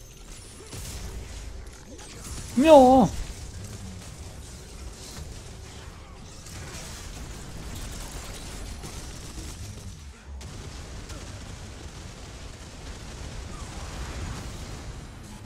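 Game combat sounds clash and crackle with magic blasts.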